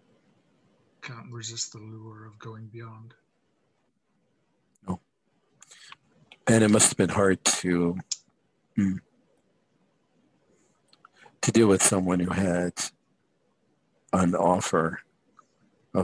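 Men talk over an online call, one after another, with pauses between.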